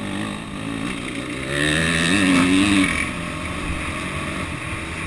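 Dirt bike engines rev loudly close by.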